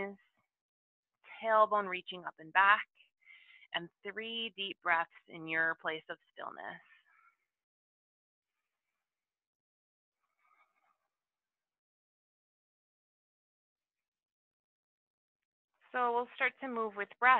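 A woman speaks calmly and clearly, as if guiding an exercise, close to a microphone.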